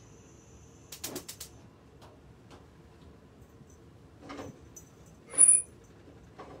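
Kitchenware clinks and clatters briefly.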